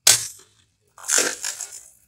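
Water sprays out with a hissing rush.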